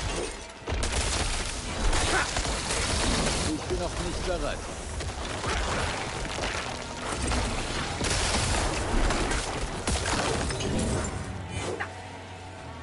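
Magic blasts and impacts crash in quick bursts during a fight.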